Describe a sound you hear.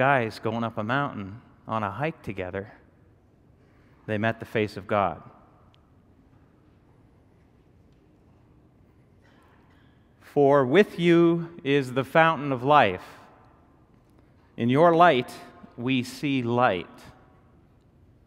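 A middle-aged man reads out calmly through a microphone in a hall.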